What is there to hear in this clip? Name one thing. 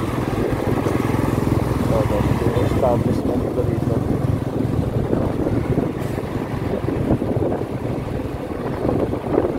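A heavy truck engine rumbles steadily close by.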